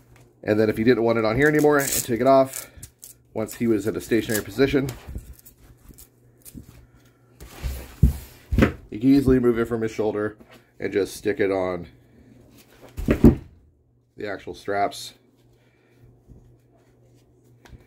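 Fabric straps rustle and buckles click as hands adjust them.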